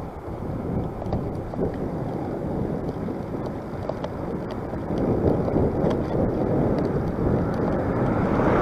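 Wind rushes loudly past on a moving motorcycle.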